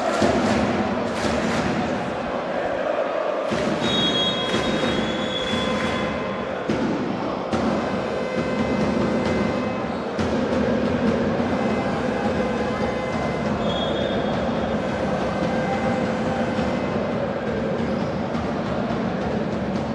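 A crowd of men and women talks and calls out in a large echoing hall.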